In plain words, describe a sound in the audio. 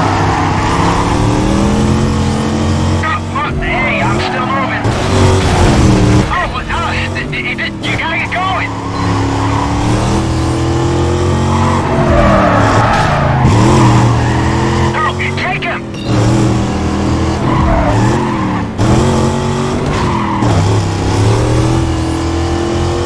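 A V8 muscle car engine roars, rising in pitch and dropping as it shifts gears.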